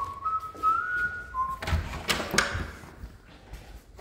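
A door latch clicks as a door opens.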